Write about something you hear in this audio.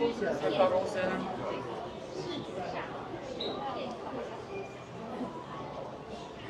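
Several women chat nearby.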